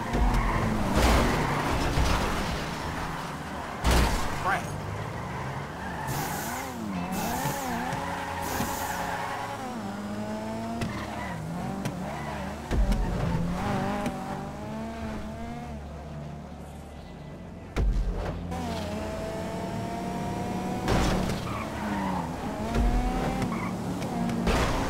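A car engine revs and whines at high speed.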